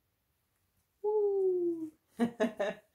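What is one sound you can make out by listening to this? A baby gives a short, falling wail.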